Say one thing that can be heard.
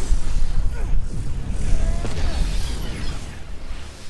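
Sparks crackle and fizz.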